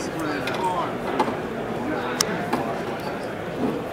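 A playing card is slid onto a play mat.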